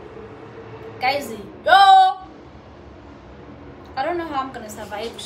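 A young woman speaks close by, with animation.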